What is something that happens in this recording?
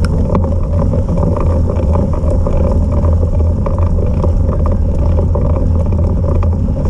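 Tyres crunch and rumble over snowy, muddy ground.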